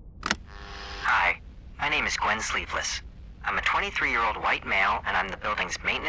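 A young man speaks calmly through a small loudspeaker.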